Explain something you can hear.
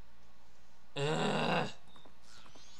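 A man exclaims loudly, close to a microphone.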